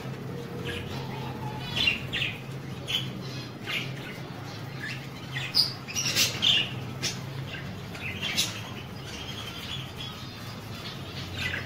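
Budgerigars splash in a shallow water dish.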